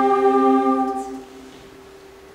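A mixed choir sings a held chord in an echoing hall.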